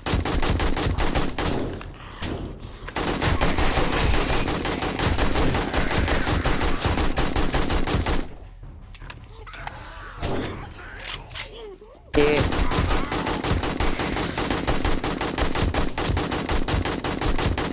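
An automatic rifle fires in rapid bursts.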